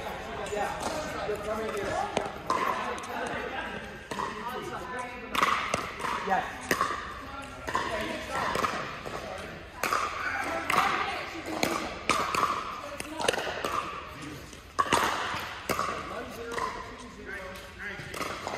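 Paddles smack a ball back and forth in a large echoing hall.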